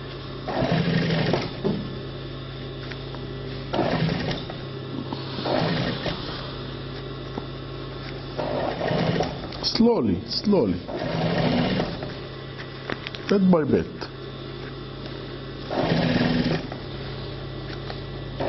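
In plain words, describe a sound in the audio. A sewing machine motor hums steadily.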